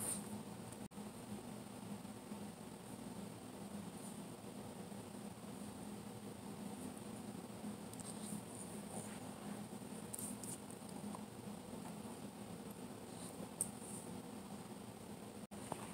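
A small dog's paws patter softly on a carpet.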